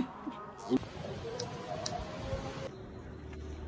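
Scissors snip hair close by.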